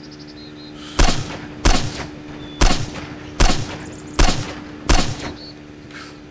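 A rifle fires several sharp shots in quick succession.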